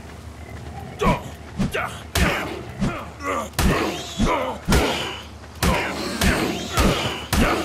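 Punches thump repeatedly against a creature's body.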